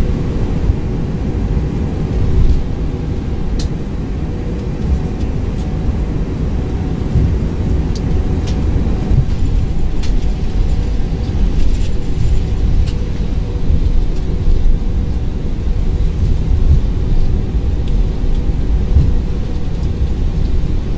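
Jet engines rumble steadily as an airliner rolls along a runway.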